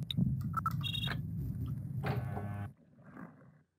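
A door lock clicks open.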